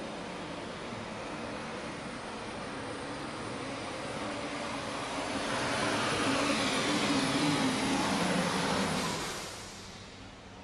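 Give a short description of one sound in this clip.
A tractor engine roars loudly at full throttle.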